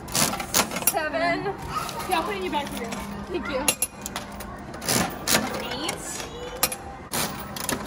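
Plastic capsules clatter out of a gumball machine.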